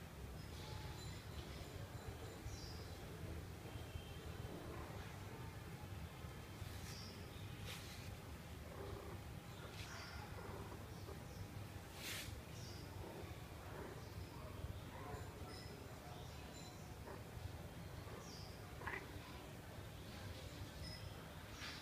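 A hand rubs softly against a cat's fur.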